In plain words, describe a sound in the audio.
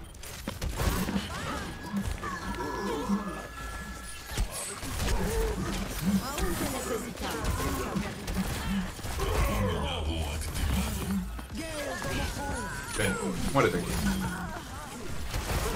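Gunshots from a video game ring out.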